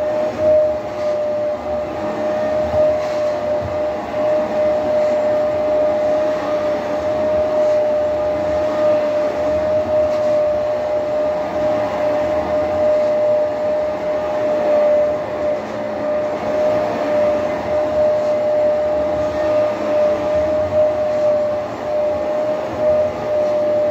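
A carpet cleaner's brush scrubs back and forth over carpet.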